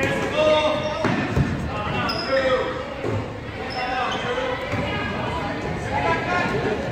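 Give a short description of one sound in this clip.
A crowd of spectators talks and cheers in a large echoing gym.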